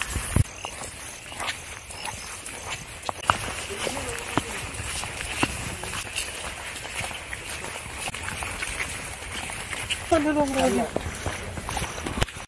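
Footsteps scuff on a wet paved path.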